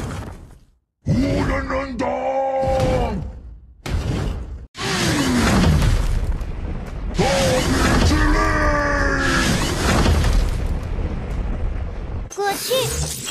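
Magical blasts whoosh and rumble loudly.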